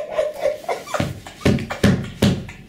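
Dull thumps and slaps land on a soft bed.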